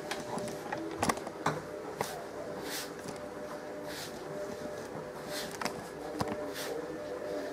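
A hand kneads wet dough in a metal bowl, squishing and slapping.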